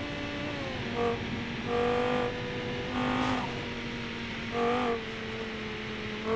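A race car engine drones steadily and shifts pitch as the car speeds along.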